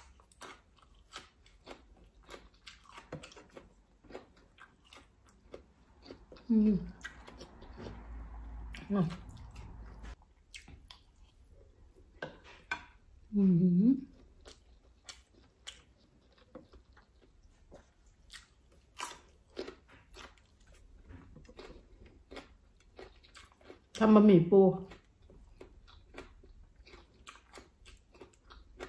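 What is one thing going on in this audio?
A woman chews and slurps loudly close to a microphone.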